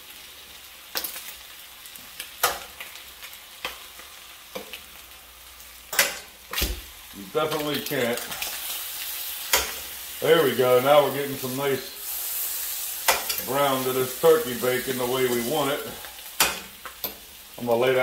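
Metal tongs clink against a metal pan.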